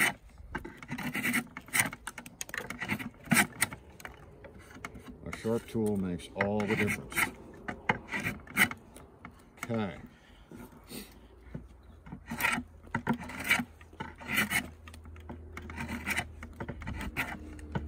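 A spokeshave scrapes and shaves wood in short, rasping strokes.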